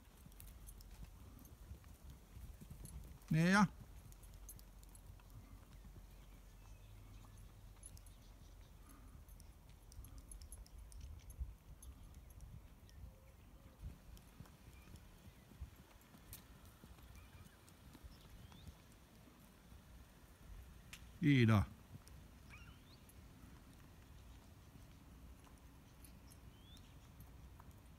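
Horses' hooves thud softly on sand.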